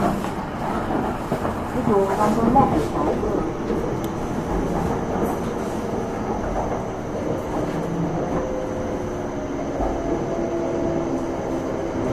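A train rumbles along an elevated track, heard from inside a carriage.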